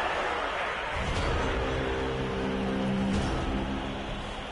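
A short musical jingle plays as a turn ends.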